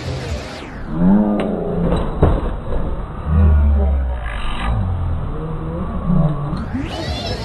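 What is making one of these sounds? A dog growls and snarls.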